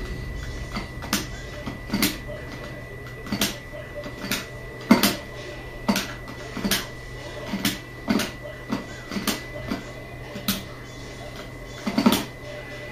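Punches and kicks from a fighting game thud and smack through a television speaker, in quick bursts.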